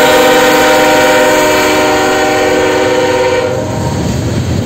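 A locomotive horn blows loudly and steadily, then cuts off.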